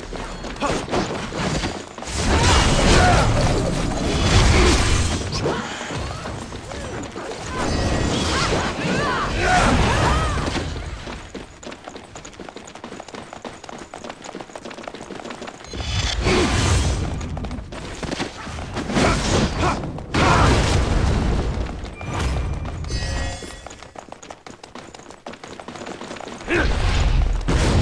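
Magic spells whoosh and blast in a game.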